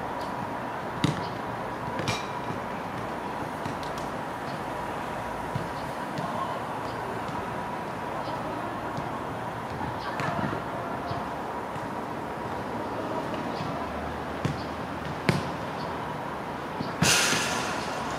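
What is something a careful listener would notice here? Children kick soccer balls on artificial turf outdoors, with dull thumps.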